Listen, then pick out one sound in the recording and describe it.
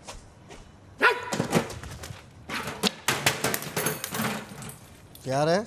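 A chair clatters as a man kicks it over.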